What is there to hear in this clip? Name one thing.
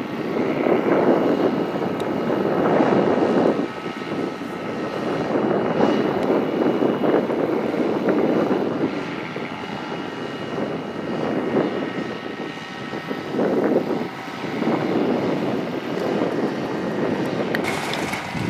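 Wind gusts loudly across the microphone outdoors.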